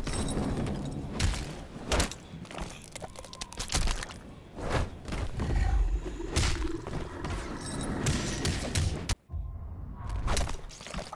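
Punches and blows land with heavy thuds in a fighting game.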